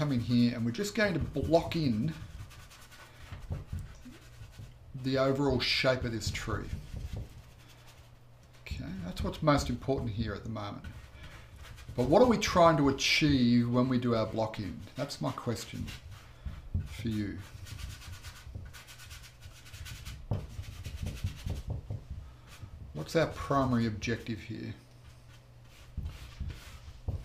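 A brush scrubs and swishes on canvas.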